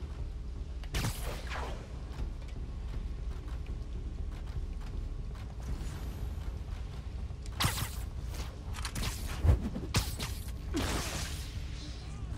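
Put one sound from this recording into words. Sharp whooshing zips sound again and again.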